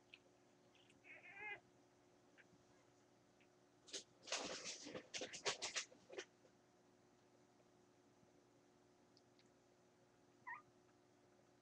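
Newborn puppies squeak and whimper while nursing.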